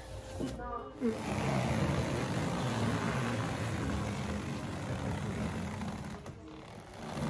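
A hand truck rolls across the floor.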